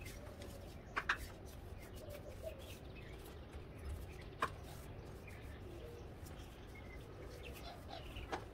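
A cloth wipes and taps against a window.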